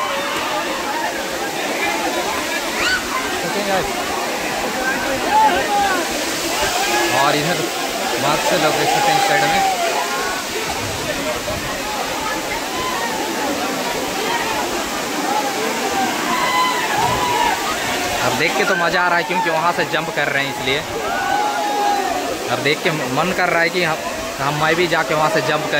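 A large crowd of young men and women shouts and chatters outdoors.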